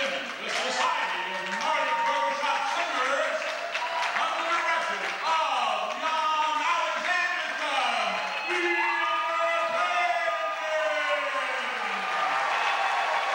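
A woman sings alone in a large hall.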